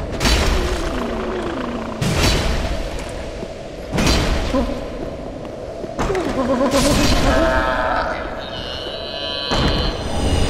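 A heavy axe strikes a body with loud, deep thuds at a steady pace.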